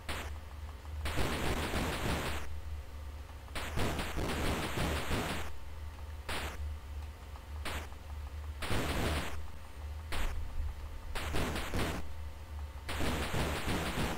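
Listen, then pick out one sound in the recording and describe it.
Bursts of hissing noise from a video game come and go.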